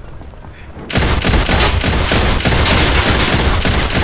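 Gunfire bursts in rapid, loud shots.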